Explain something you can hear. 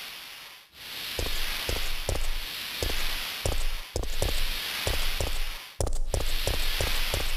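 Gunshots fire again and again.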